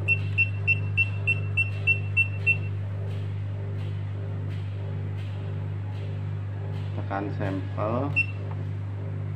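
An electronic scale beeps in a quick series of short, high beeps.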